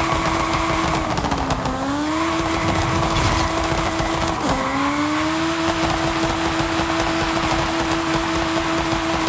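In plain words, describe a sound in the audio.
Tyres roar on a road.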